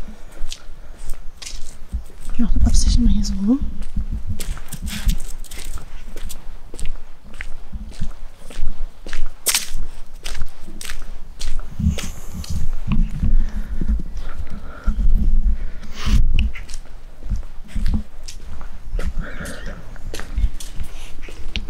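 Footsteps walk on paving stones.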